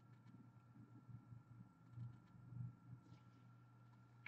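Cardboard cards rustle softly as they are handled.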